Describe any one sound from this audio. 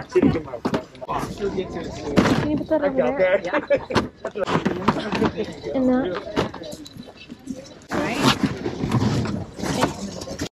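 Cardboard boxes rustle and scrape as they are handled.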